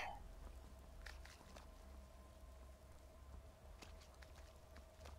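Footsteps crunch on a stone path.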